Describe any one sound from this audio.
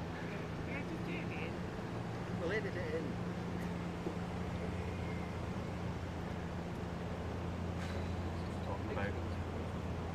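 Oars dip and splash softly in calm water.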